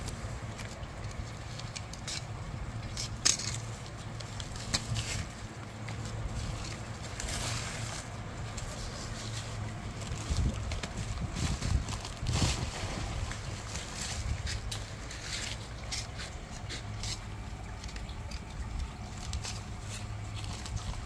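Plastic pots rustle and crinkle as hands handle them.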